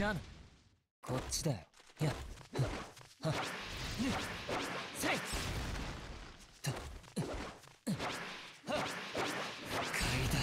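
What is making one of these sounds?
Heavy blows thud and crack.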